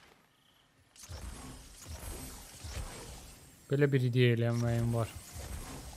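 A magical energy beam crackles and hums.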